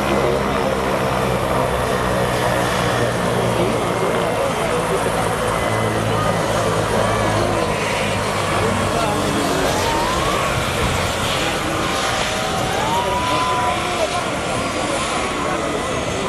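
A helicopter's turbine engine whines steadily close by.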